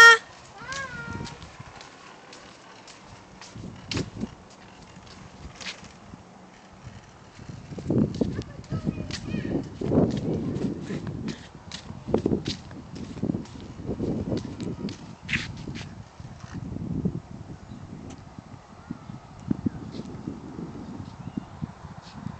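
A child's bicycle rolls along the pavement.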